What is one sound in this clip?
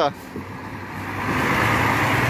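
A bus engine hums close by as the bus rolls past.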